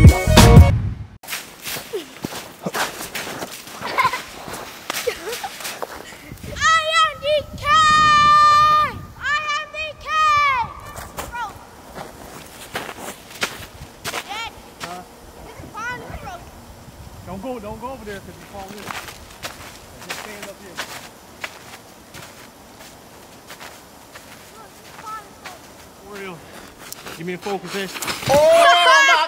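Boots crunch on snow.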